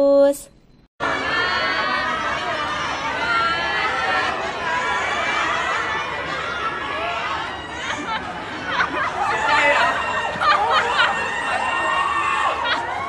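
A crowd of young women chatter and squeal excitedly nearby.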